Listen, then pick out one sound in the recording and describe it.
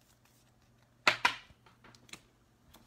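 A trading card is handled, with quick plastic taps and rustles.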